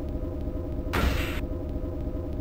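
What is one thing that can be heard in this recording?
A heavy metallic blow strikes.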